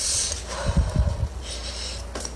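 A young woman blows softly on hot food.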